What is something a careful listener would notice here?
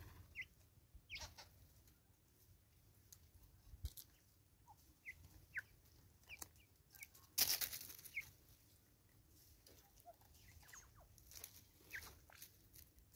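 Small birds chirp in short high calls.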